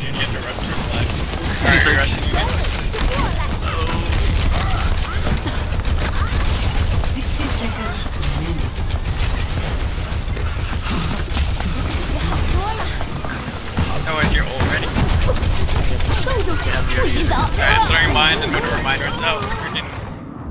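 Game gunfire and explosions crackle around.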